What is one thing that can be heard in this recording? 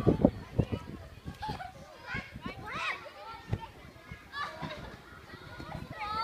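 Children shout and call out excitedly nearby, outdoors.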